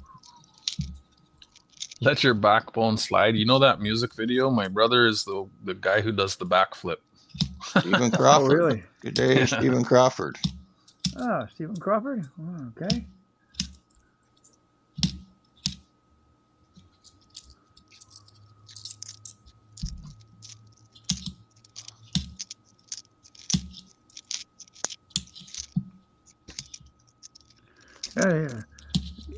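Coins clink softly between fingers.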